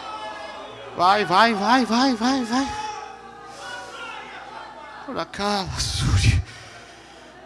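A crowd of men and women shouts and cheers.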